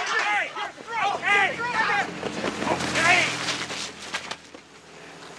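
Men shout and cheer with excitement.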